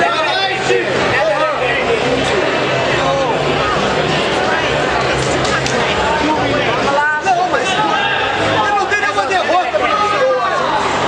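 A crowd of people talk and cheer around in a busy hall.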